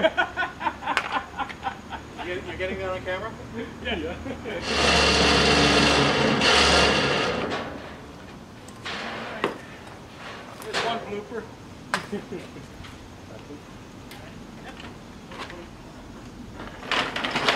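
Metal clanks against a trailer.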